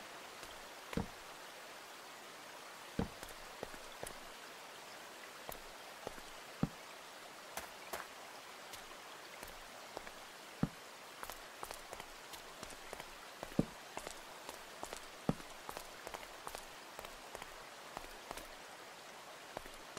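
A pickaxe knocks and chips at stone in short, sharp taps.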